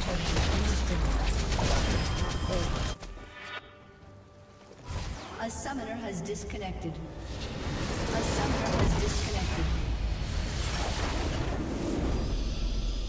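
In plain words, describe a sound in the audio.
Game battle effects clash and burst loudly.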